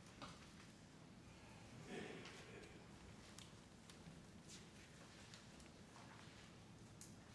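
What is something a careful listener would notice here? A man sits down.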